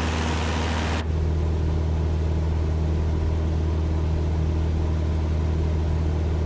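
A small propeller plane's engine hums steadily, muffled from inside the cabin.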